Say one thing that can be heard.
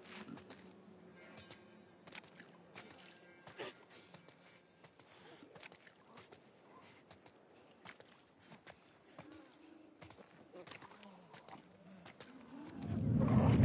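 Footsteps crunch on gravel and wet ground.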